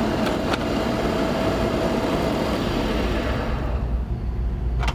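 A chisel scrapes and cuts spinning wood.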